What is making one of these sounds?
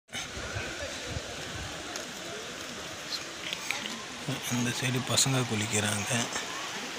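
Water flows and splashes in a shallow stream outdoors.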